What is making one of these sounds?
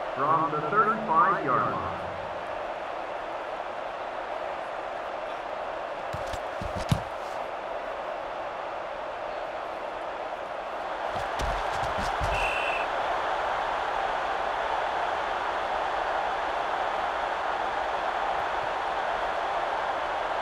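A large crowd roars steadily in a stadium, growing louder partway through.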